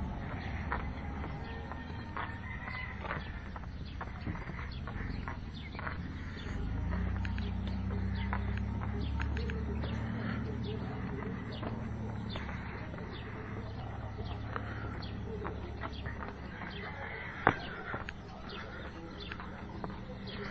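Footsteps scuff along pavement outdoors.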